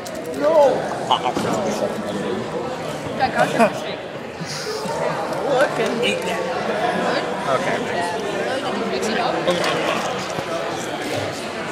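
Teenage boys talk and laugh nearby.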